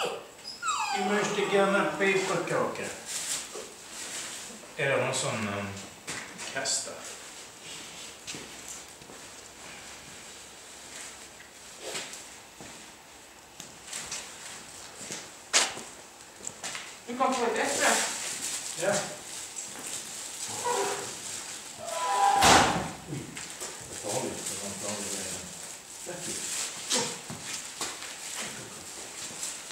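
Footsteps scuff on a stone floor.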